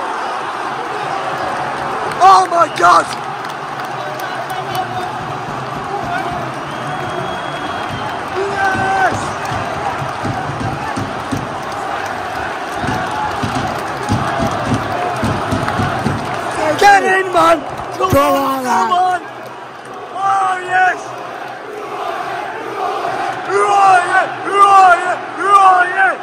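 A large stadium crowd roars and sings loudly, all around and close.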